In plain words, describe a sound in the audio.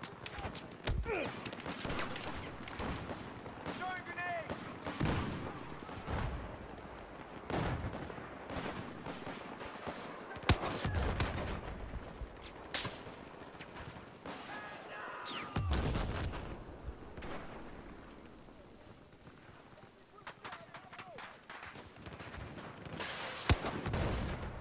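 Sniper rifle shots crack sharply, with booming echoes.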